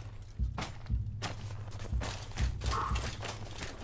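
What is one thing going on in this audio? Footsteps crunch softly in snow.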